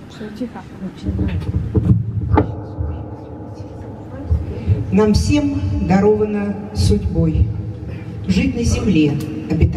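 An older woman sings through a microphone and loudspeaker.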